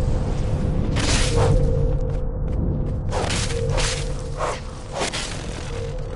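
Grass rustles loudly as a small figure runs through it.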